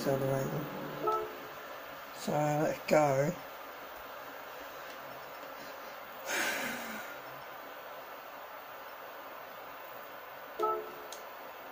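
Short electronic menu tones chime from a television speaker.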